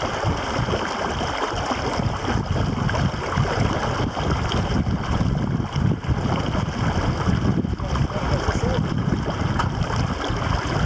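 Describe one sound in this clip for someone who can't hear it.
Wind rumbles and buffets loudly outdoors on open water.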